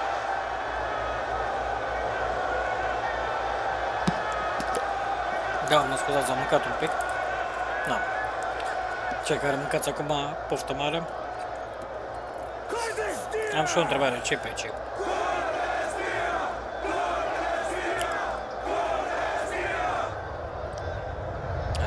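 A large crowd cheers and chants steadily outdoors.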